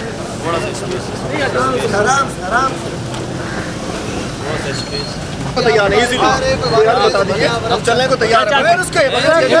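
Men shout loudly nearby.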